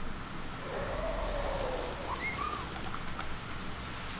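Drinking gulps sound as a potion is swallowed.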